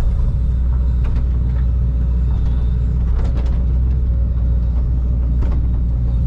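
An excavator bucket scrapes and thuds against soil.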